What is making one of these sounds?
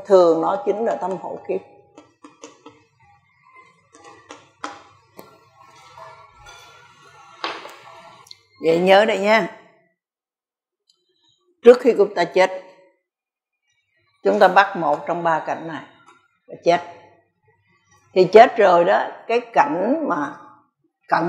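An elderly woman speaks calmly through a microphone, with pauses between phrases.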